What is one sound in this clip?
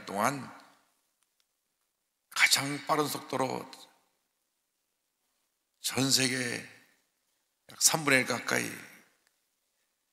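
A middle-aged man speaks calmly and deliberately into a microphone, with pauses between phrases.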